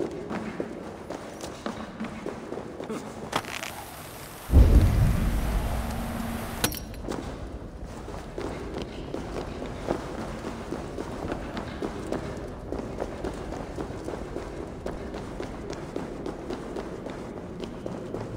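Fire crackles and burns steadily.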